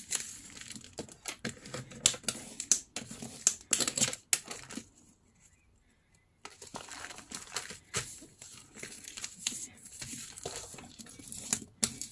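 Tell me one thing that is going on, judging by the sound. A bone folder scrapes along a paper crease.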